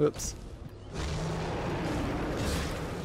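A huge dragon roars with a deep rumble.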